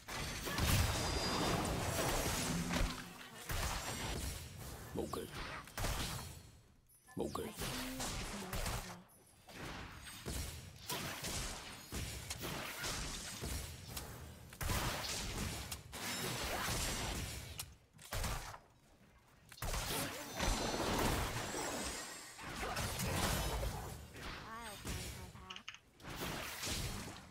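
Game effects whoosh, clash and zap in a fast fight.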